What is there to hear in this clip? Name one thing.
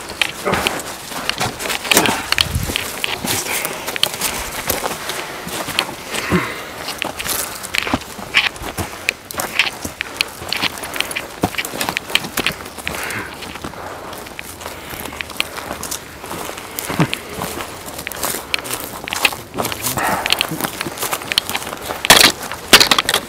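Footsteps crunch on dry ground and twigs.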